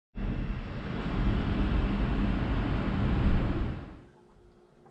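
Heavy rain patters steadily against a window.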